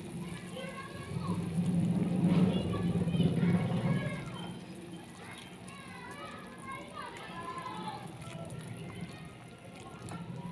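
A ladle stirs and sloshes soup in a metal pot.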